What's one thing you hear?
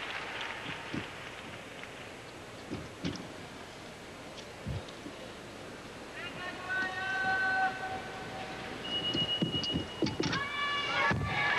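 Feet thump on a wooden balance beam.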